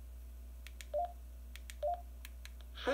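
A handheld radio gives short electronic beeps.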